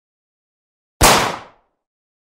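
A single gunshot cracks.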